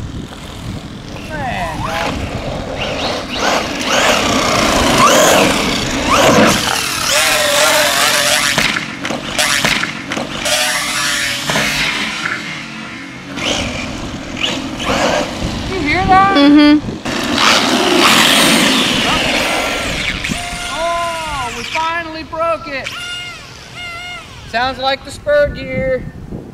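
A small electric motor whines loudly as a toy car speeds past, rising and falling in pitch.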